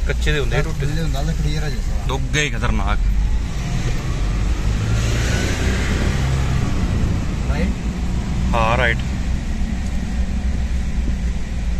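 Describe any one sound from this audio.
A vehicle engine hums steadily with a low rumble of tyres on the road.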